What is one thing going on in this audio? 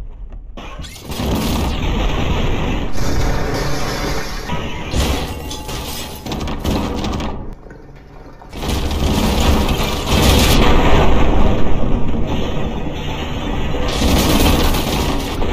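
Rocket thrusters roar loudly.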